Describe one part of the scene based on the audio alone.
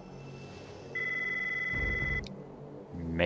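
A steady electronic tone chimes briefly.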